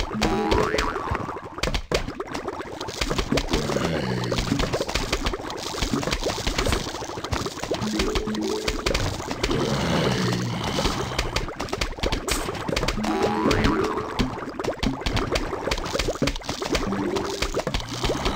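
Plants shoot peas with soft popping sounds.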